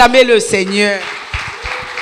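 A young woman sings into a microphone over loudspeakers.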